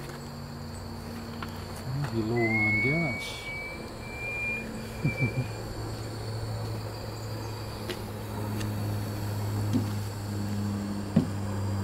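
A model steam engine runs with a steady hum.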